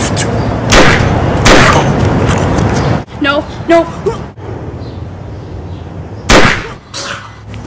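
A toy gun fires sharp shots.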